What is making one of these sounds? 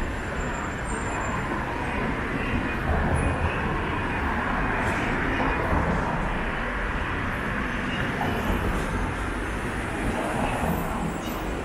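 Cars drive past on the street.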